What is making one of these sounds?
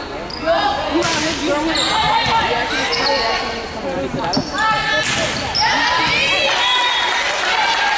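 Players' sneakers squeak on the court floor.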